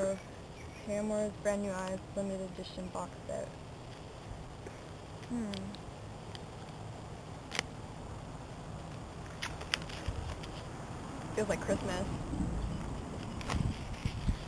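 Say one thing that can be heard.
Plastic wrapping crinkles and tears under fingers.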